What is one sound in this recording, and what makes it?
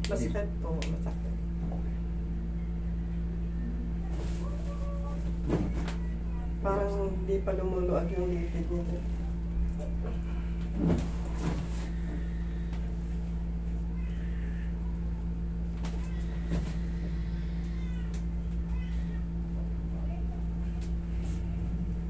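An air conditioner hums steadily.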